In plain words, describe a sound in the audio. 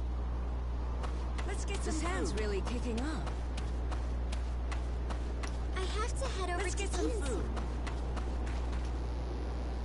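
Footsteps run quickly across sandy ground.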